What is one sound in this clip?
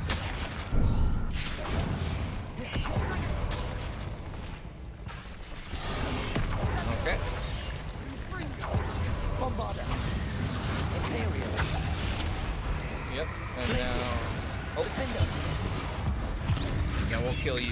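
A giant spider hisses and screeches.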